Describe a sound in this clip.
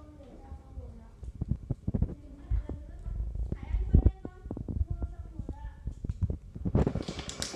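Abacus beads click and clack under a child's fingers.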